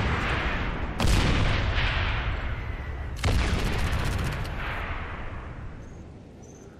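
Explosions boom nearby and rumble away.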